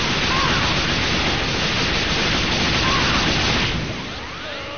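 Energy blasts roar and crackle loudly.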